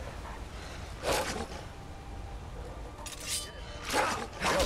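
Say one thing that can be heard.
A sword is drawn from its sheath with a metallic ring.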